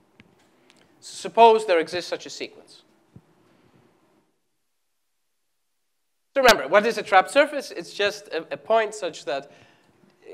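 A man lectures calmly through a microphone in an echoing hall.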